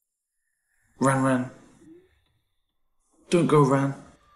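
A young man calls out pleadingly, close by.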